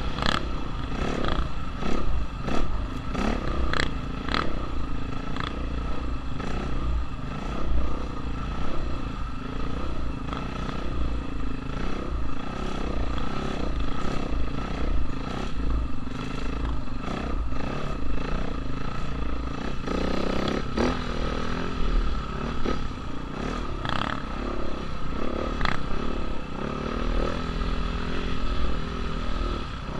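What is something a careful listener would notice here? The suspension and chassis of a dirt bike knock and rattle over bumps.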